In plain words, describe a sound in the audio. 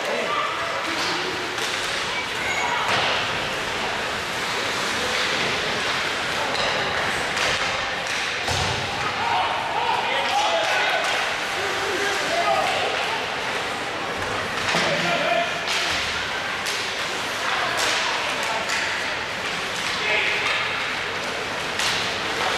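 Hockey sticks clack against the puck.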